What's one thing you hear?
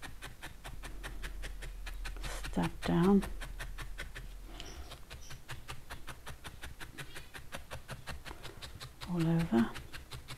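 A felting needle pokes rapidly and steadily into wool with soft crunching stabs.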